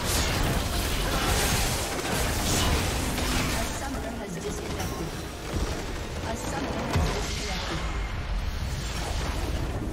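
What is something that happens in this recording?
Magic spells crackle, whoosh and burst.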